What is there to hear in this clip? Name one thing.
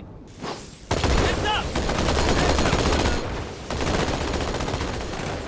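A large explosion blasts nearby.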